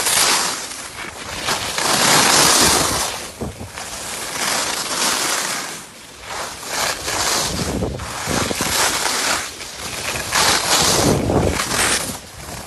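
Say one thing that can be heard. Skis scrape and hiss over hard snow close by, in surging bursts.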